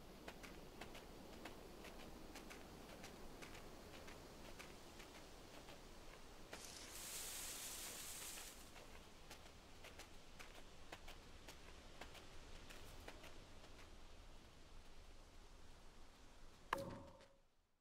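A fox's paws patter quickly over leaves and undergrowth.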